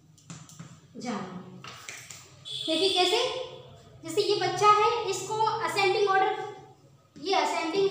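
A woman speaks clearly, as if explaining a lesson, close by.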